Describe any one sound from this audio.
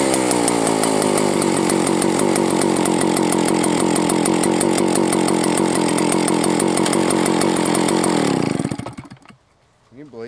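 A chainsaw engine idles loudly with a fast, rattling sputter, then winds down and stops.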